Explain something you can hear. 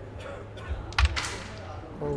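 A carrom striker flicks sharply into a cluster of wooden coins with a loud clack.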